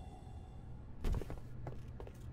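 A rifle butt swings and strikes with a heavy thud.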